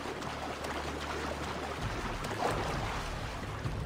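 Water splashes as someone swims quickly.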